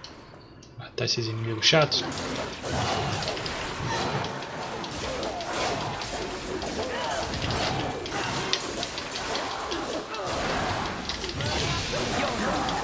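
Blades clash and slash in quick bursts.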